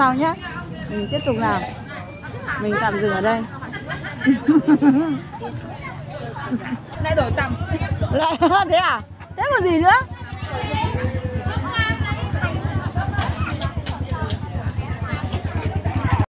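Women talk and call out nearby.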